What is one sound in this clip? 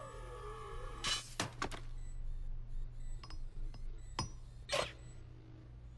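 A metal hammer clanks as it is picked up and set down.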